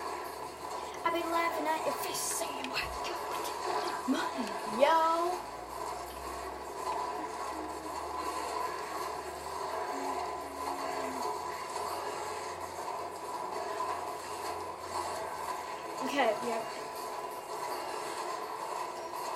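Cartoonish blasts and zaps of a game firing ring out from a television speaker.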